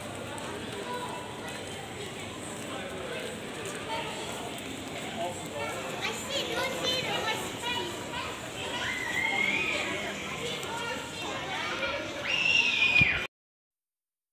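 A busy crowd murmurs and chatters nearby outdoors.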